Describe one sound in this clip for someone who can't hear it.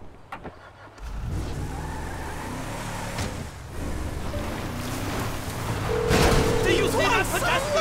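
A truck engine roars as the truck drives over dirt.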